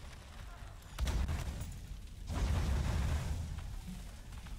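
A campfire flares up and crackles.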